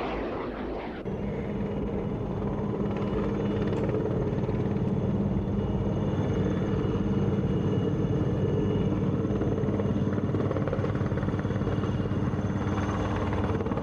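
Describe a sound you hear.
A helicopter's rotor and engine hum and thump steadily.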